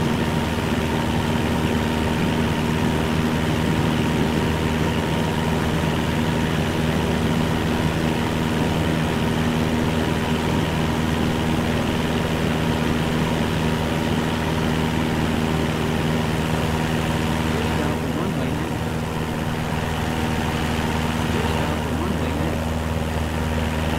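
A small propeller plane's engine drones steadily at full power.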